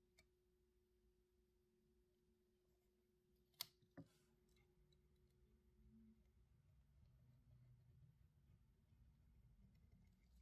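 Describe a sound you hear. Masking tape crinkles and rustles as it is pressed down.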